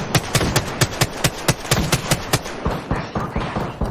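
An automatic rifle fires in rapid bursts.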